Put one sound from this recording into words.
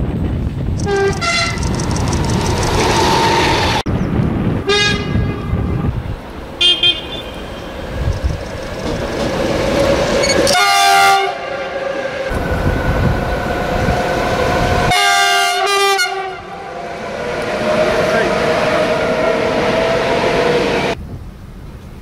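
A train rushes past with a loud rumble of wheels on the rails.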